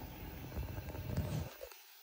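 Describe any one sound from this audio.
Air bubbles gurgle in a tank of water.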